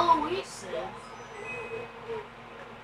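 A television plays a video game's short electronic chimes.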